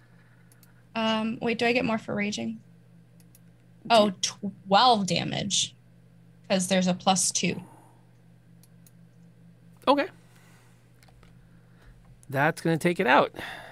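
A young woman speaks with animation over an online call, in short bursts.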